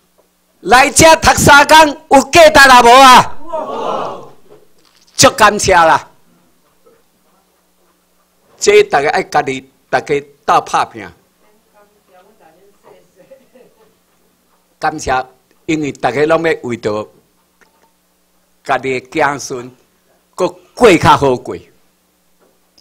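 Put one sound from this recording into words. An elderly man speaks into a microphone through loudspeakers, in short bursts with pauses.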